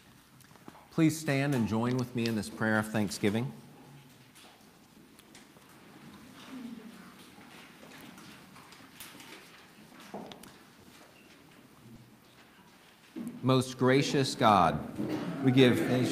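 A man speaks calmly through a microphone and loudspeakers in a room.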